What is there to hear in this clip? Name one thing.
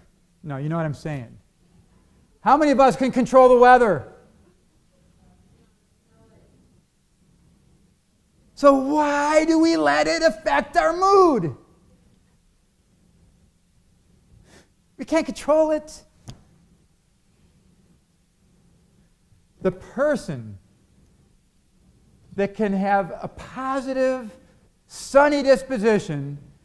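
A middle-aged man speaks with animation into a microphone, with pauses between phrases.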